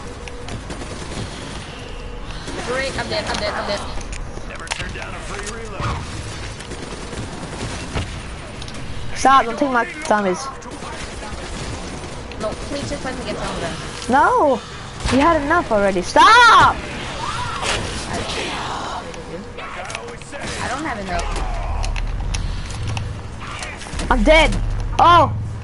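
Gunfire and energy blasts crackle from a video game.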